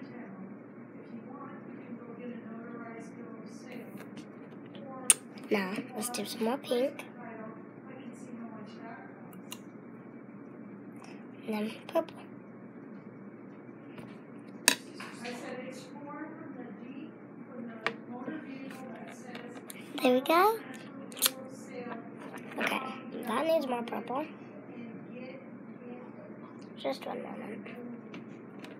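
A young girl talks close up, chatty and animated.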